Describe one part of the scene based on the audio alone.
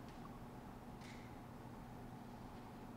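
A small hand bell rings once in a large, echoing room.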